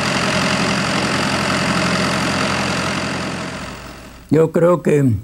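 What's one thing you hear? A tractor engine rumbles steadily, then fades away.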